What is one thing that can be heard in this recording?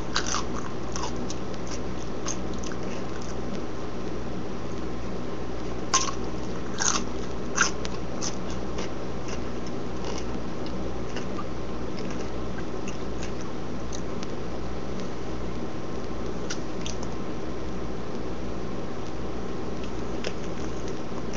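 A young man bites and crunches on a cucumber close by.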